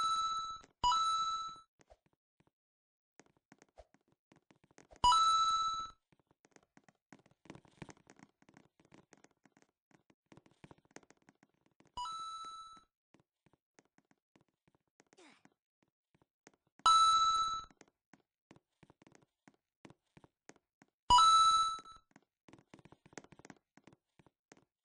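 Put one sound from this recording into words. Light footsteps patter quickly as a game character runs.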